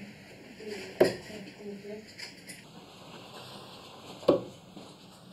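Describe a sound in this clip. Darts thud into a dartboard with sharp knocks.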